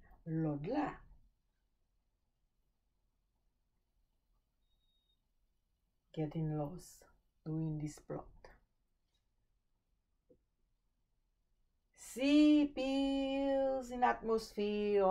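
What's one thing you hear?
A woman speaks and sings calmly, close by, in bursts with pauses.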